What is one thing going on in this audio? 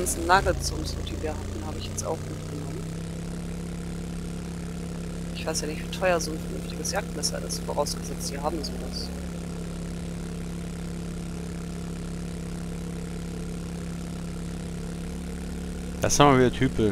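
A motorbike engine drones steadily.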